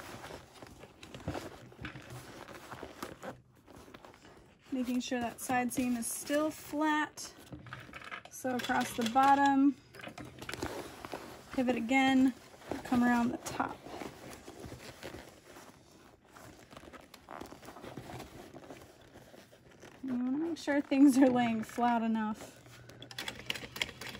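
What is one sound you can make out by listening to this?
Fabric rustles as hands move it.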